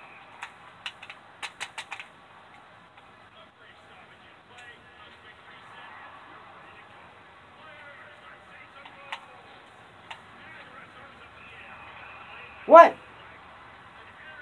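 A hockey video game plays quietly through a television speaker.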